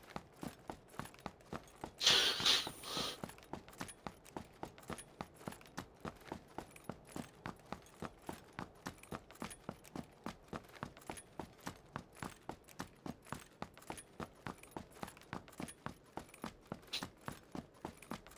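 Quick footsteps crunch steadily on gravel.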